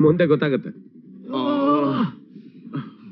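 A man wails and sobs loudly.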